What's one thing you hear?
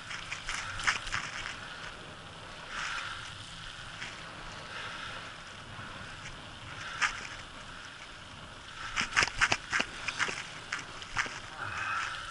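Wind rushes past close by.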